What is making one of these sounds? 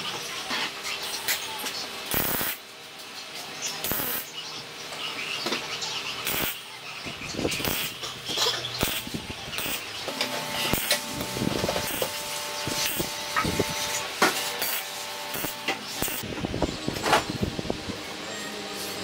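A welder crackles and sputters in short bursts.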